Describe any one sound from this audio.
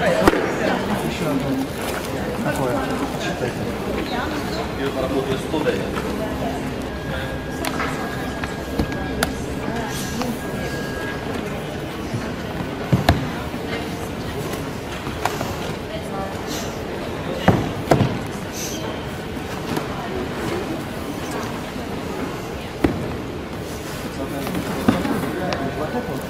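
Many people murmur and talk in a large echoing hall.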